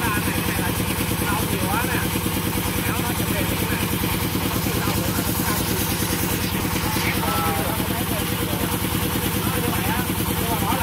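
A man talks.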